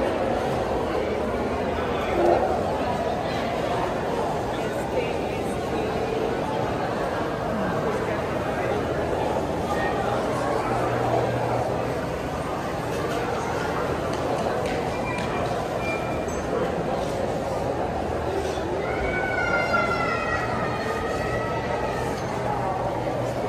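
Many people chatter in a large, echoing indoor hall.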